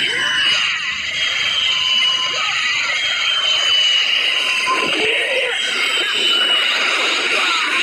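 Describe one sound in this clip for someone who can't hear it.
Energy blasts roar and crackle in a video game fight.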